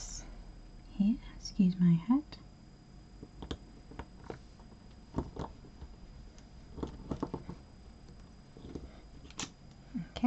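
Ribbon rustles as hands wrap and tie it.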